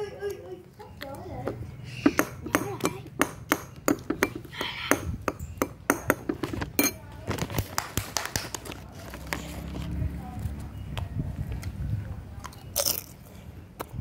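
A young girl crunches on food.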